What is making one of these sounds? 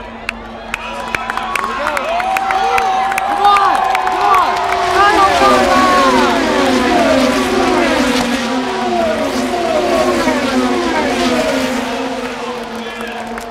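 A large outdoor crowd cheers and whistles.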